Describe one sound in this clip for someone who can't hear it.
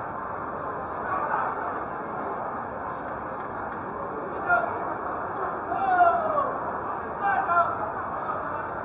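A man calls out nearby over the crowd.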